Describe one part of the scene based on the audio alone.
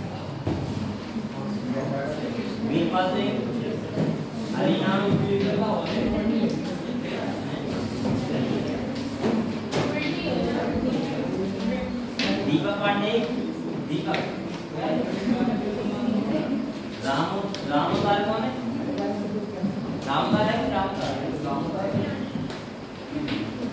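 A young man speaks calmly and steadily, close by.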